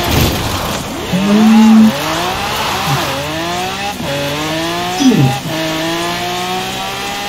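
A sports car engine drops to a low roar and revs up again.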